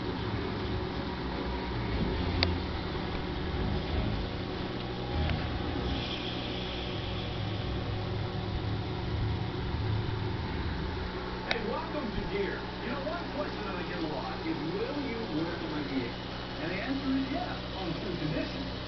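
Water trickles and bubbles in an aquarium.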